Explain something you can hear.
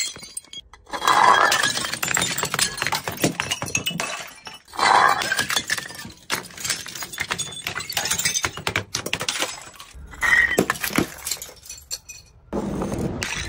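Glass bottles shatter on stone steps.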